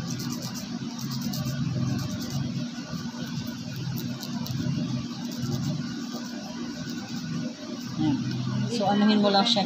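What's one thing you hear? A nail file rasps back and forth against a fingernail.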